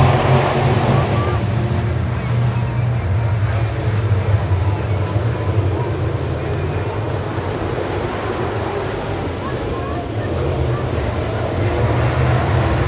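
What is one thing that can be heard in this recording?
Race car engines drone more distantly on the far side of the track.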